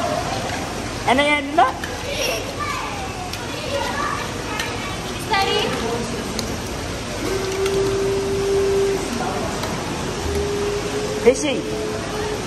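Young children shout and squeal nearby.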